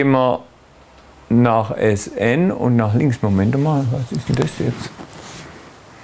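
A man lectures calmly, heard from a distance in a room with some echo.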